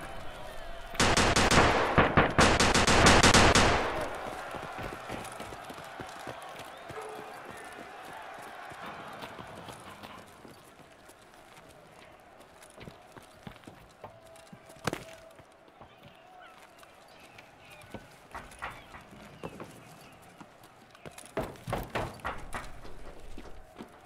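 Gunshots fire in rapid bursts, close by.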